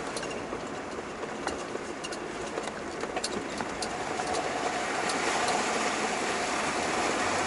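Stones knock and clatter under the tyres.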